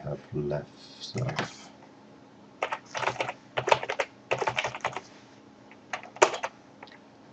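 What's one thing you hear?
Keys clatter as a keyboard is typed on.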